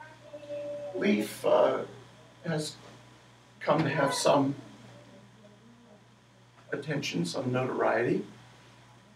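An elderly man speaks nearby, pausing between phrases.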